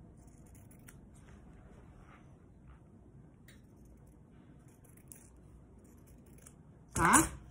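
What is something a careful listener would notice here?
Scissors snip through fabric with soft crisp cuts.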